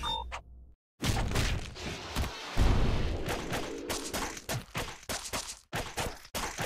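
Loud video game fight sounds crash and clang in rapid bursts.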